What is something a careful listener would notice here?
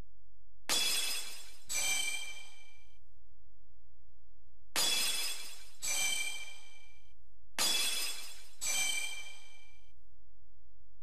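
Bright sparkling chimes ring out in quick pairs, three times.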